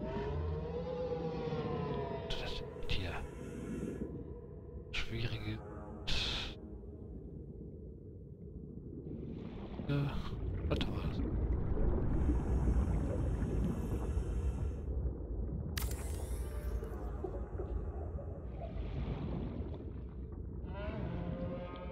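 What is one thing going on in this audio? A low underwater rumble and burble goes on throughout.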